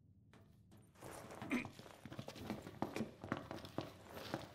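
Footsteps tap on a hard floor at a walking pace.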